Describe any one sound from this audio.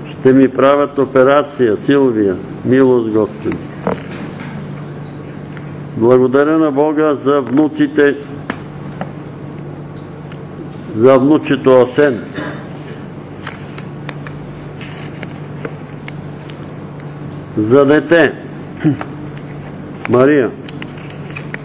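An elderly man speaks slowly in short phrases, with long pauses.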